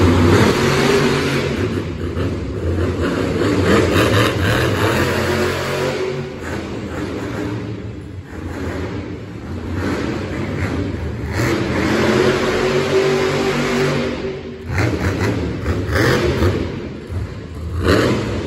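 A monster truck engine roars and revs loudly in a large echoing arena.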